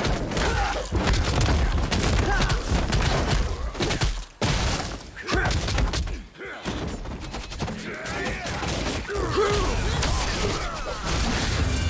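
Combat blows clash and thud.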